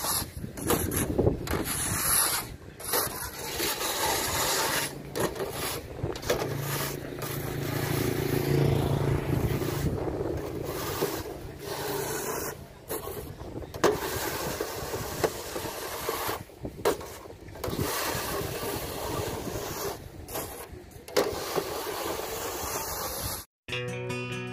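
A wooden rake scrapes across grain on a hard paved floor.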